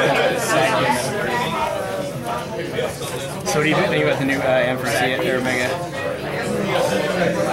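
Playing cards slide and tap softly on a mat.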